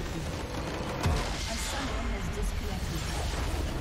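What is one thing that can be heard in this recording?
A deep blast booms and rumbles.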